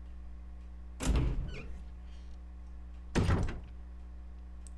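A heavy door swings open with a loud rush.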